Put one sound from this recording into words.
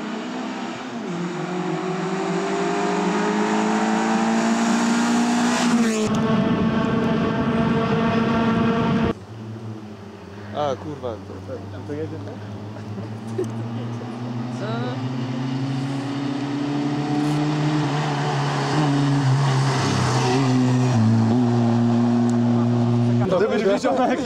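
A rally car engine roars and revs as the car speeds past.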